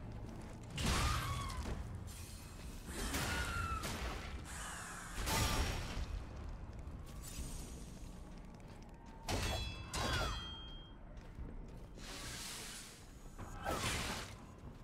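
Metal blades clash and ring loudly in sharp bursts.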